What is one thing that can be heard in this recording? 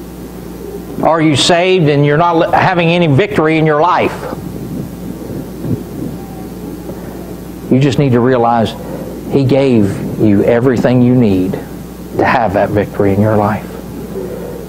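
A middle-aged man speaks calmly and deliberately through a microphone in a room with some echo.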